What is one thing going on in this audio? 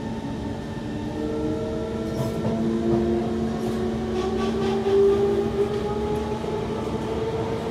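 A train's motor whines, rising in pitch as it speeds up.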